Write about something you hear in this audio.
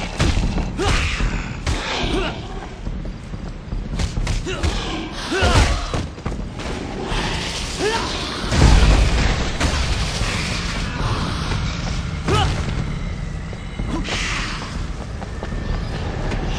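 Punches and kicks land with heavy thuds during a fistfight.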